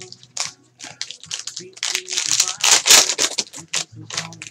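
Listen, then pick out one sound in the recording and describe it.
A foil wrapper tears open.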